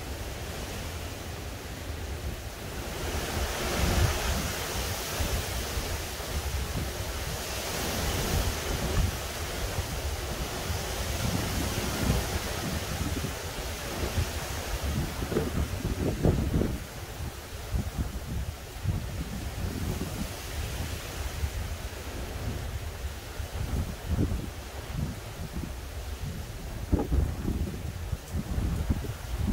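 Wind buffets the microphone with low rumbling.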